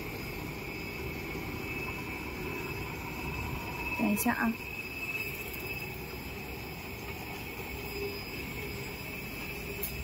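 A machine hums steadily with a high whine.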